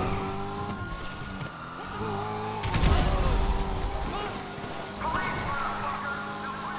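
A sports car engine roars as the car speeds along.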